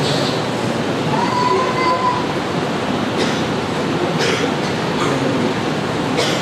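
A young man sings or chants into a microphone, amplified through loudspeakers in an echoing hall.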